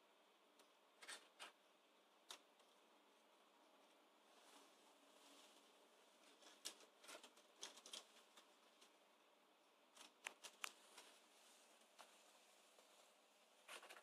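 A cat rustles and scrabbles among crinkly things in a drawer.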